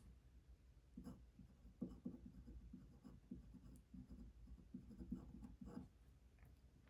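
A pen scratches softly on paper.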